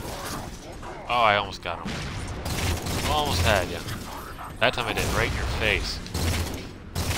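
Energy blasts zap and sizzle.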